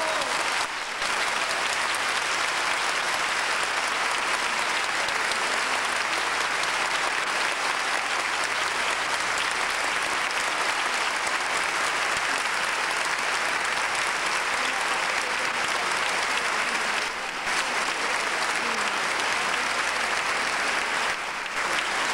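A man sings in an operatic voice on a stage.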